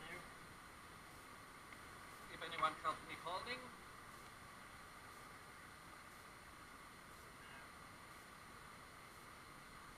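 A fine mesh net rustles as it is handled.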